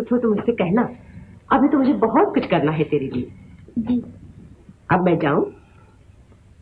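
A young woman answers quietly.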